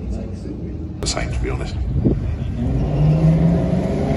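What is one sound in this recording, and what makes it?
A racing car engine roars past close by.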